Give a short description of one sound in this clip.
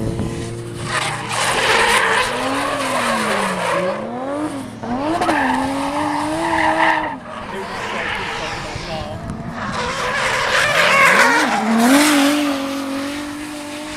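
Tyres screech loudly on asphalt as a car drifts.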